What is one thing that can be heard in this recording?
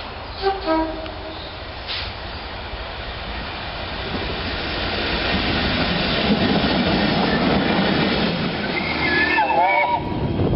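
A diesel locomotive rumbles past loudly.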